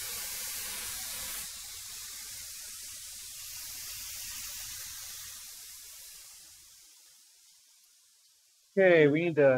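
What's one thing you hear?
A wood planer whirs and slowly winds down.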